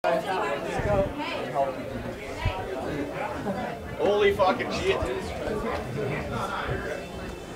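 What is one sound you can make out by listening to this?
A crowd of people chatter and call out nearby.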